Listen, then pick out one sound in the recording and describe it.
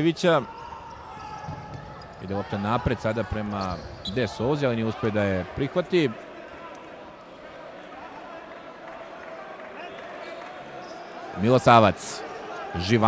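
A crowd murmurs throughout a large echoing hall.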